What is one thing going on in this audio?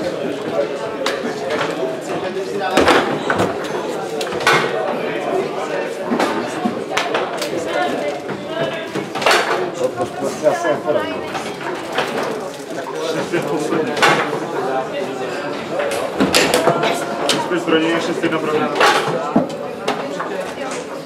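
Teenage boys talk and call out nearby.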